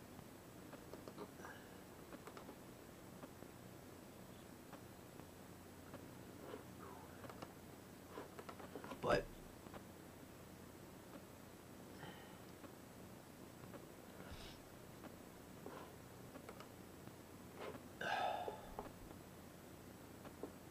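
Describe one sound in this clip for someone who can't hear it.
A young man speaks quietly and calmly, close to a computer microphone.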